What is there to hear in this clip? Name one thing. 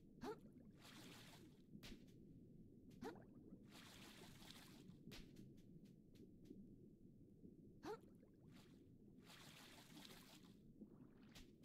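Bubbles fizz and gurgle underwater in short bursts.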